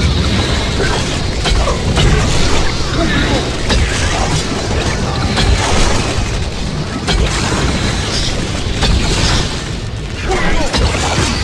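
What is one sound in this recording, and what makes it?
Magic blasts burst with sharp zaps.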